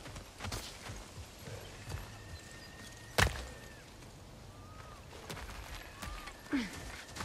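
Heavy footsteps crunch on stone and dirt.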